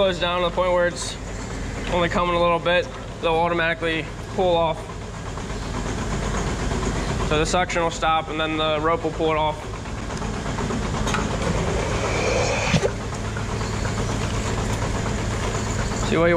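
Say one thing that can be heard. A milking machine hums steadily close by.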